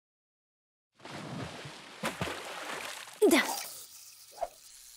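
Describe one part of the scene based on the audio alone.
Water laps gently.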